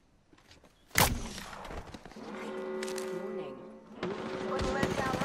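Metal clicks and clatters as a rifle is handled and swapped.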